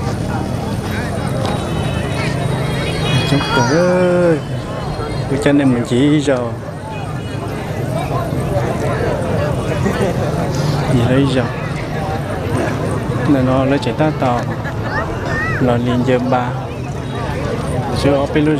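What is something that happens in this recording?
A large outdoor crowd chatters throughout.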